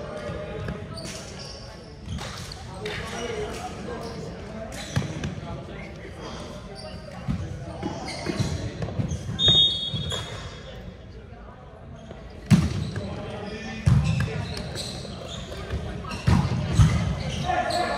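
A volleyball is hit with sharp slaps that echo in a large hall.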